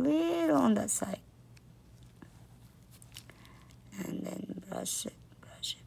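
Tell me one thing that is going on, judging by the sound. A brush softly dabs and strokes against a fingernail.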